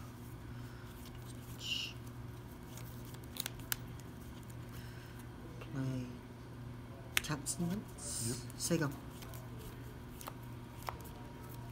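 Cards riffle and flick as they are shuffled in a hand.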